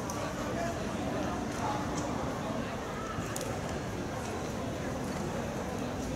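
Several young people talk nearby.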